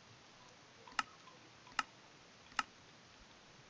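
Menu buttons click sharply a few times.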